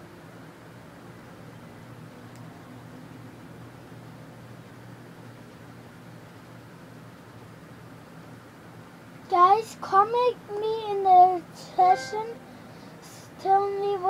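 An electric fan hums steadily nearby.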